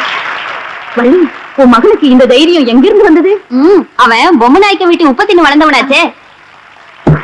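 A middle-aged woman talks with animation.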